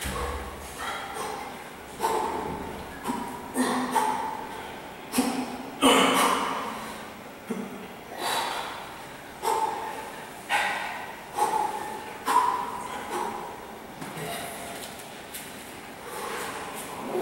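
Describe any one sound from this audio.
A young man speaks and breathes hard between efforts in a small echoing room.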